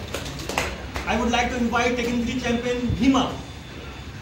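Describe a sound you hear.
A man speaks close by in a steady, pitched voice.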